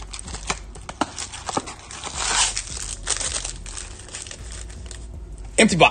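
Card packs crinkle as they are pulled from a box.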